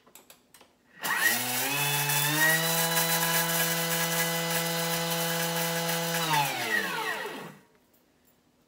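A food processor motor whirs up to high speed, runs steadily, then winds down.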